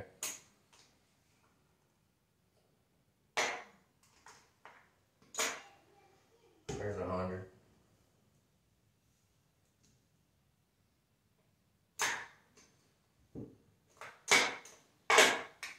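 Casino chips clack and click as they are stacked and set down.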